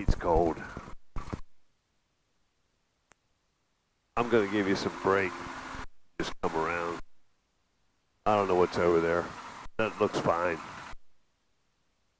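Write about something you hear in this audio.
An elderly man speaks calmly over a headset intercom.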